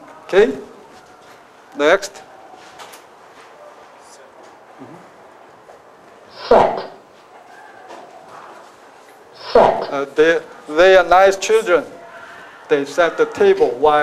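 A man speaks into a microphone through a loudspeaker, in short phrases with pauses, then more steadily and with animation.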